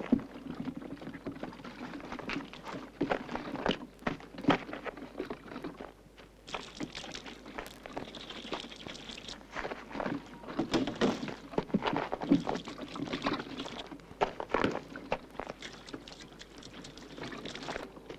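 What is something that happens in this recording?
Plastic cans knock and thud against metal.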